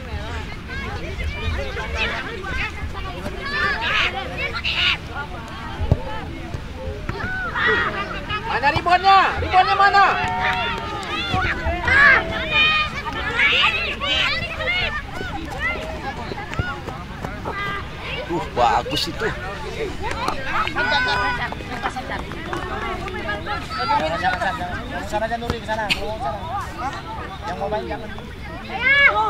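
Young boys shout and call out to each other outdoors at a distance.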